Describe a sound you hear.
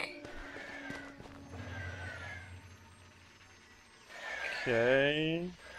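Electronic game sound effects whoosh and chirp as volleys of shots burst out.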